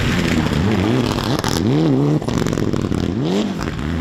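Gravel sprays and crunches under spinning tyres.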